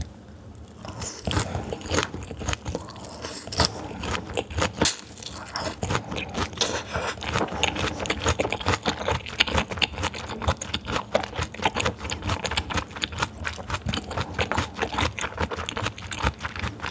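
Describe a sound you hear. A young woman chews with wet, squelching sounds close to a microphone.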